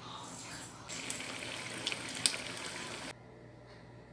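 Batter sizzles loudly as it fries in hot oil.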